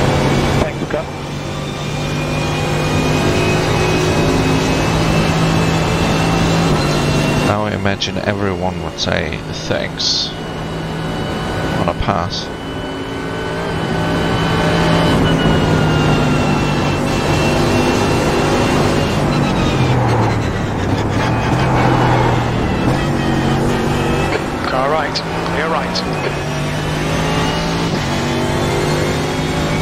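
A racing car engine roars at high revs and shifts up through the gears.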